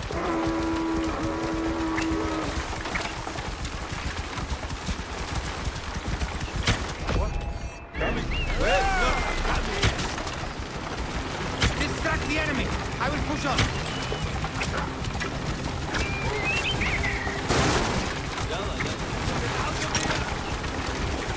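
Horse hooves pound and chariot wheels rumble over rough ground.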